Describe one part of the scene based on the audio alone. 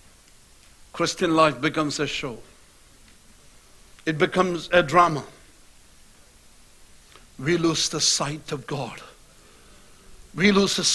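A middle-aged man speaks slowly and earnestly into a microphone, in short phrases with pauses.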